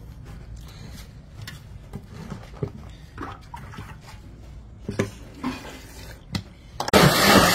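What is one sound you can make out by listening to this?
Leaves and lime pieces drop into a blender jug with light thumps.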